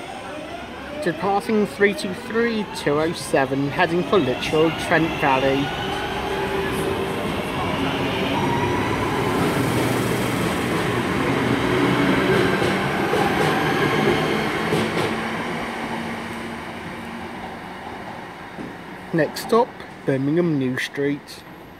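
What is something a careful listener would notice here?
A train horn sounds in several loud blasts.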